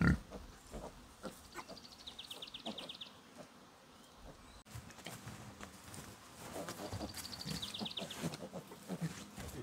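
Pigs grunt and snuffle close by.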